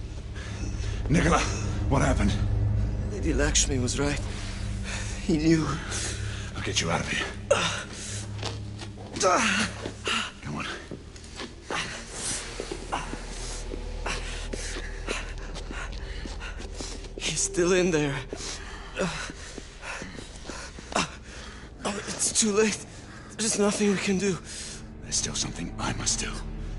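A man speaks in a tense, low voice close by.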